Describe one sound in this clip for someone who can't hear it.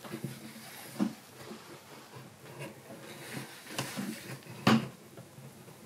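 A chisel knocks sharply against wood now and then.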